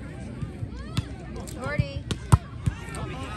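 A volleyball is struck with hands.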